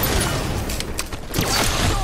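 An energy sword swings with a sharp whoosh.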